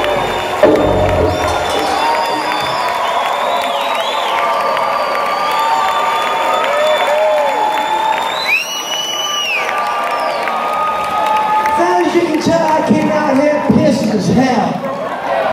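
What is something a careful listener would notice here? A rock band plays loudly through big speakers in a large hall.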